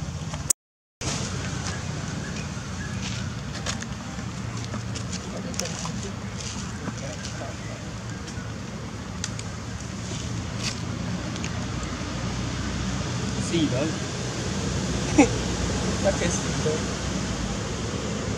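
A monkey chews soft fruit with wet smacking sounds.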